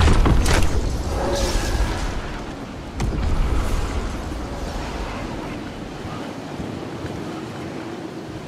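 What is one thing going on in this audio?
Wind rushes steadily past during a glide through the air.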